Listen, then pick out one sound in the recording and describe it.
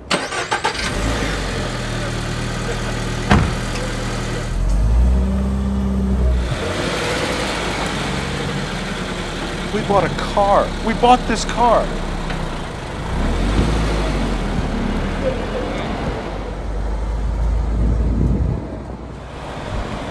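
A car engine idles with a low steady rumble.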